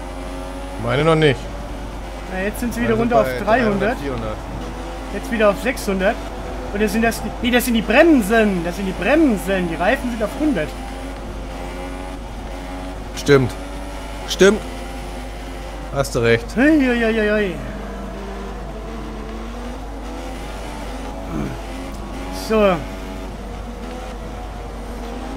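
A racing car engine hums steadily at low speed.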